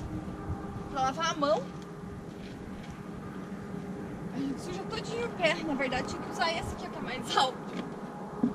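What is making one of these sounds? A young woman talks.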